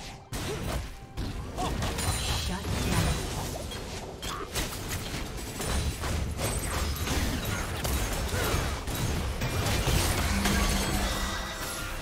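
Magic blasts and weapon strikes crash rapidly in a busy fight.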